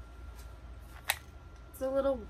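A metal clasp of a purse snaps open with a click.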